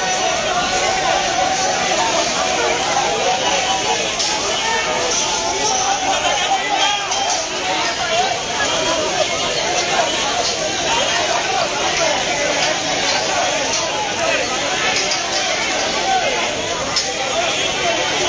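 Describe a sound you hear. A large crowd of men and women shouts and chants loudly outdoors.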